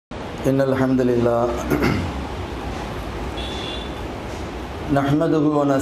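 A man speaks slowly and with feeling into a microphone, his voice carried over loudspeakers.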